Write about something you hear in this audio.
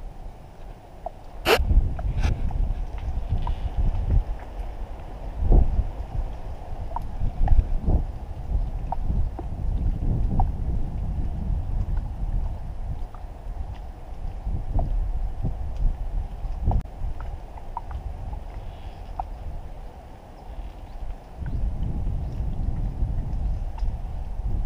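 Water laps and splashes against a small boat's hull.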